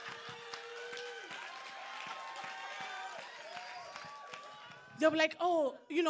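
A woman laughs in an audience.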